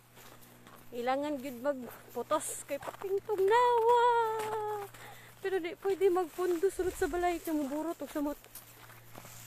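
A young woman speaks close by, muffled and animated.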